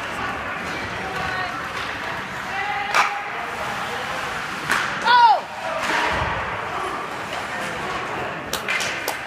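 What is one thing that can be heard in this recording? Spectators cheer and shout in a large echoing rink.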